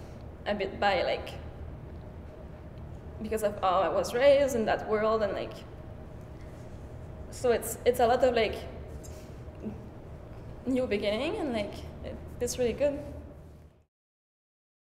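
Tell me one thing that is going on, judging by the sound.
A young woman speaks calmly into a microphone, in short bursts with pauses.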